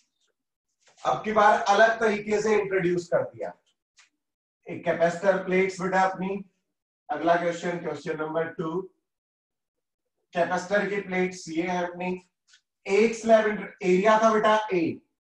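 A man speaks calmly, as if lecturing, into a nearby microphone.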